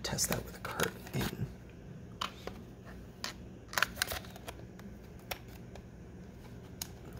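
Plastic parts click and rattle as they are handled and snapped together.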